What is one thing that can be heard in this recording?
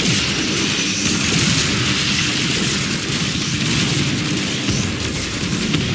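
Energy blasts crackle and whoosh.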